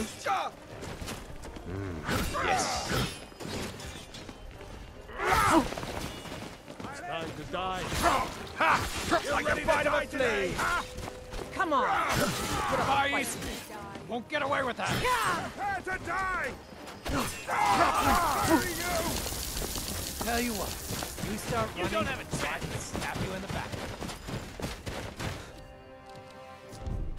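Swords and axes clash in a melee.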